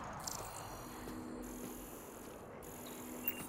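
An electronic scanner hums steadily.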